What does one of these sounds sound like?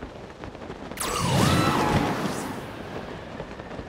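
A sudden gust of wind whooshes upward and fades.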